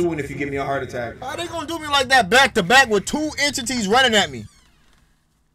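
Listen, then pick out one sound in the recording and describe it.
A young man talks loudly and with animation close to a microphone.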